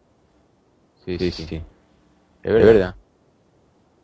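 A man speaks in short bursts through an online call, close to the microphone.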